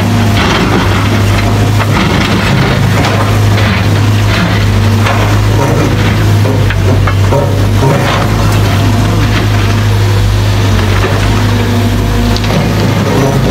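An excavator bucket scrapes through rocky soil.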